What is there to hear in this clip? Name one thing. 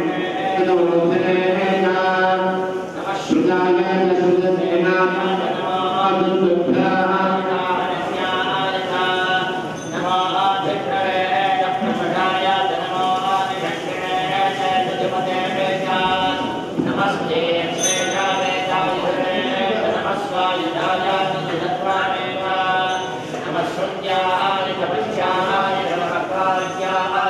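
Men chant in a steady, droning rhythm.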